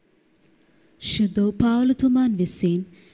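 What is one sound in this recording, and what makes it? A woman speaks loudly through a microphone in an echoing hall.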